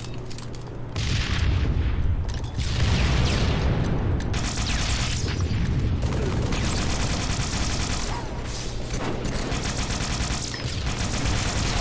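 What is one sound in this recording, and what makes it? Sci-fi weapons fire rapidly with bursts and explosions.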